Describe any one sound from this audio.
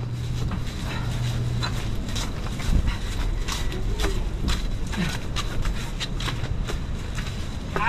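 Sandals slap on a concrete path at a steady walking pace.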